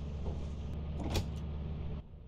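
A lever clunks as it is pulled.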